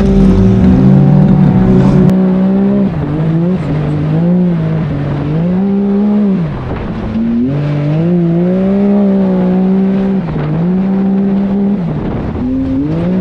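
Tyres crunch and skid over loose sand and gravel.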